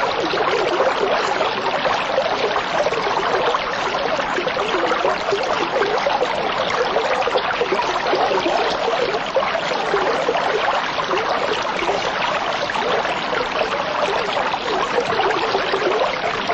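Water bubbles and gurgles steadily through a filter.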